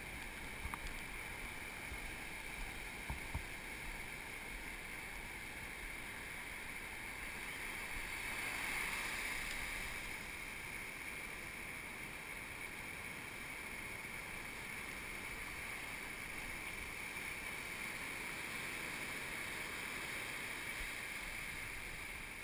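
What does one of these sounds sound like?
Shallow waves wash and fizz up the shore close by.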